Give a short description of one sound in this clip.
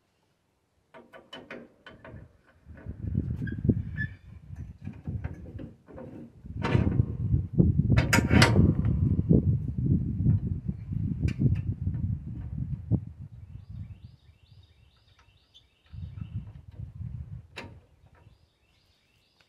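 Metal tools clink and scrape against a mower's underside.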